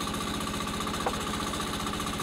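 A wooden plank knocks against timber.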